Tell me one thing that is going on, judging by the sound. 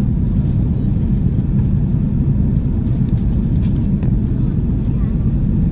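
Jet engines roar with a steady low rumble inside an airplane cabin.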